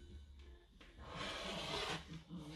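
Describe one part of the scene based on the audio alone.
A rotary cutter rolls through fabric with a soft crunch.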